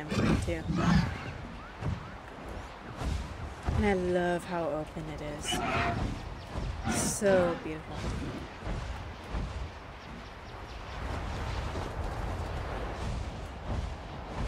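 Wind rushes steadily past a flying creature.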